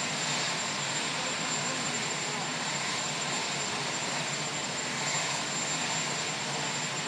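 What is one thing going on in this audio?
A crowd murmurs nearby.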